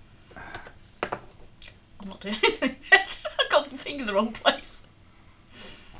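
An older woman talks and laughs with animation over an online call.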